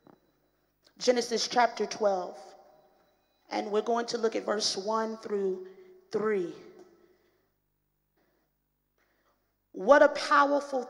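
A woman speaks with feeling into a microphone, in short phrases with pauses.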